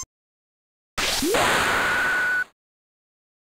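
A fiery blast roars and hisses.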